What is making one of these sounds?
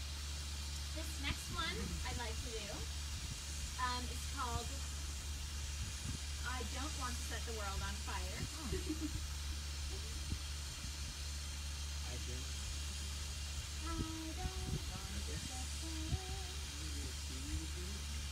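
A woman sings brightly, close by.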